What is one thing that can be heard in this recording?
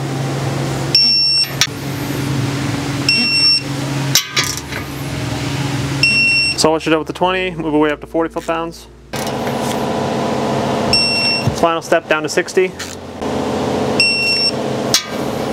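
A torque wrench beeps in short bursts.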